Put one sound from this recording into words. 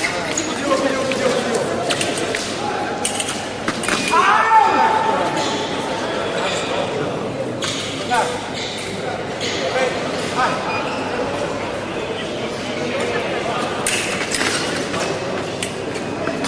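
Spectators murmur in a large echoing hall.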